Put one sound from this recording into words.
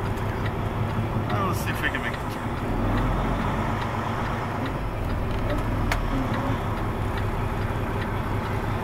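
A truck's diesel engine rumbles low and steady as it rolls slowly past close by.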